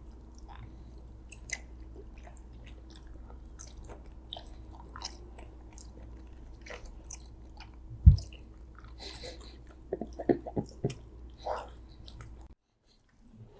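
A girl chews and slurps gummy candy close to a microphone.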